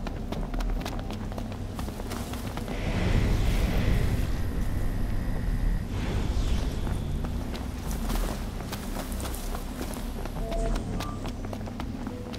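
Footsteps run over stone and dirt.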